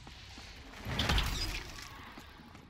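An electric bolt crackles and zaps.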